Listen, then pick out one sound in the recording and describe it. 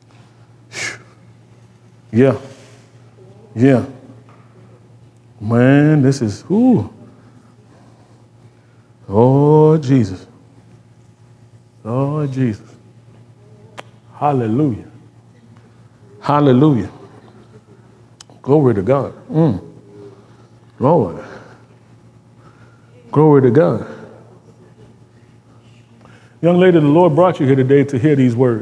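A man speaks calmly in short bursts with pauses, in an echoing room.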